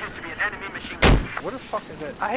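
A gun fires a sharp shot.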